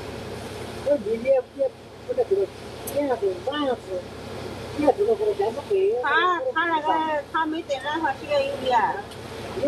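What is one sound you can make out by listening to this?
A young woman speaks nearby.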